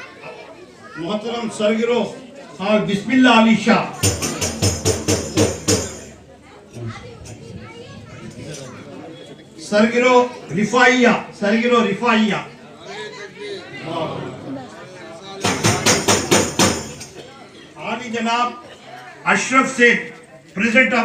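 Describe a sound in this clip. An elderly man chants in a loud, sing-song voice through a microphone.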